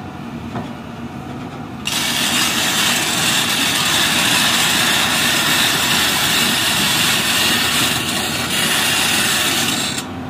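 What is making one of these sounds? A diesel crawler excavator's engine rumbles under load.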